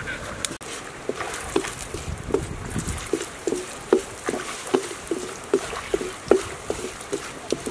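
A wood fire crackles under a wok.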